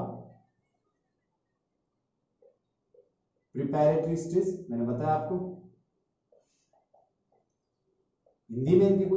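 A man speaks calmly and clearly close to a microphone, in short bursts with pauses.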